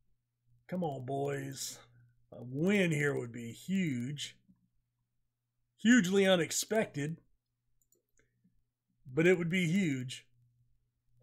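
A middle-aged man talks calmly and closely into a microphone, in short bursts with pauses.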